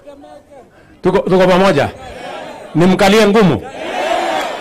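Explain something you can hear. A man speaks loudly and forcefully through a microphone and loudspeakers outdoors.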